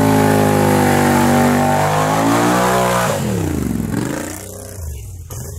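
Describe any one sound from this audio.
An ATV tyre spins and churns through thick mud.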